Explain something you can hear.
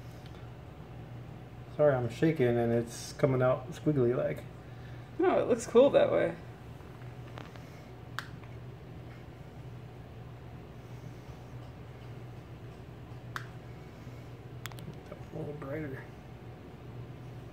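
Thick liquid glaze trickles softly from a cup onto a surface.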